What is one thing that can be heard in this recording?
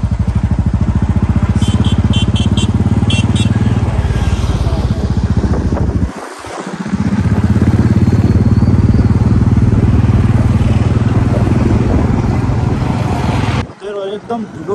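A motorcycle engine drones loudly as the bike rides along a road.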